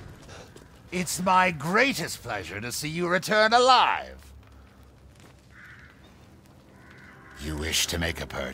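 A heavy man speaks in a deep, calm, jovial voice.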